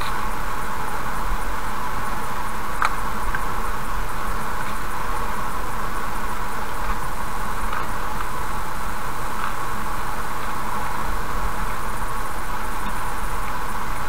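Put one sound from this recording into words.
A car drives steadily along a road with a constant hum of tyres.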